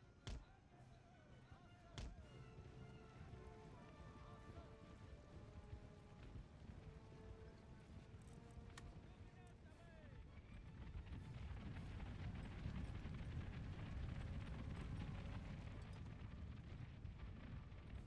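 Massed soldiers march with a low, steady rumble that grows louder.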